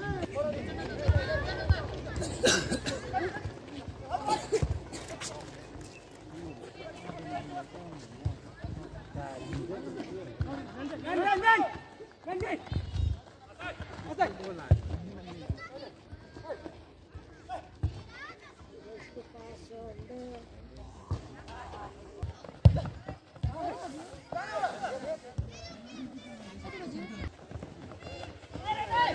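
Spectators shout and cheer around an outdoor pitch.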